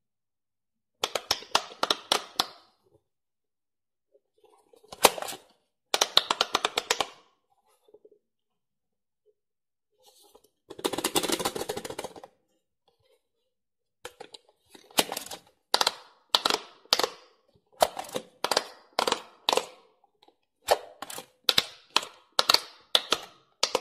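Fingers press and pop soft silicone bubbles.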